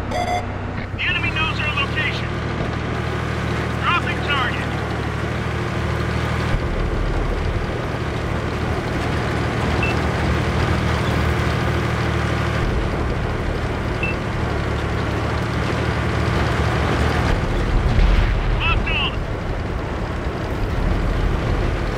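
A tank engine rumbles and drones steadily.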